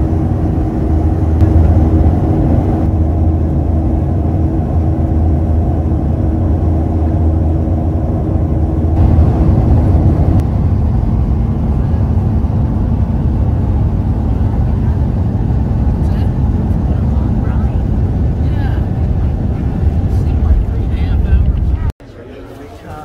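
A plane's engines roar steadily from inside the cabin.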